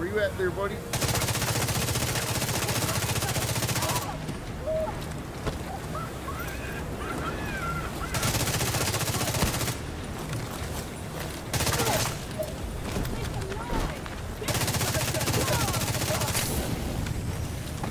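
Rapid automatic gunfire rattles in loud, sustained bursts.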